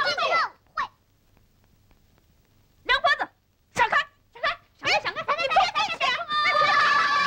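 A woman speaks sharply to the children.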